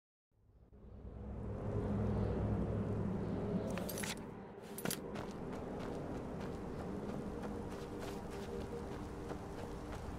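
Footsteps crunch on a stony floor.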